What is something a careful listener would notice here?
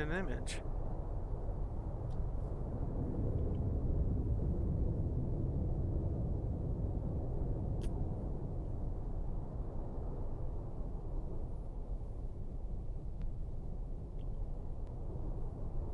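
A deep, steady underwater rumble drones on.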